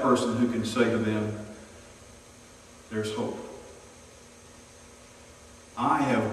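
A middle-aged man preaches into a microphone with emphasis, pausing between phrases.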